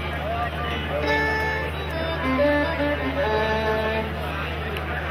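A fiddle plays a few short notes.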